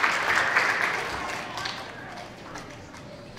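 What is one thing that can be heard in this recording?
An audience cheers and applauds loudly in a large hall, then dies down.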